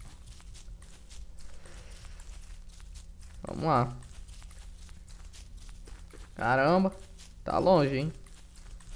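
Soft footsteps patter on grass.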